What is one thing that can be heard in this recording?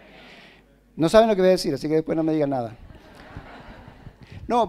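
A middle-aged man speaks calmly and clearly, close to a microphone.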